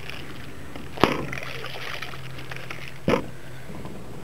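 A plastic bottle thumps down onto a glass table.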